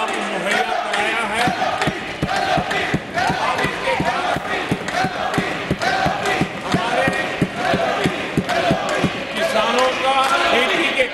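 An elderly man speaks forcefully into a microphone in a large hall.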